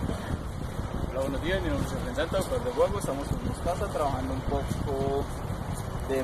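A man talks calmly to a dog nearby.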